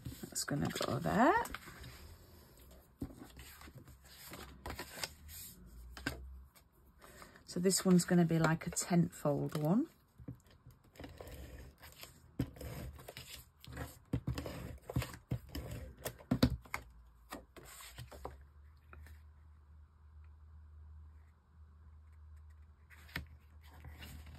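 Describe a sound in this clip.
Paper card stock rustles and taps softly against a table.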